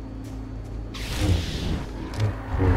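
A burst of smoke whooshes in a game.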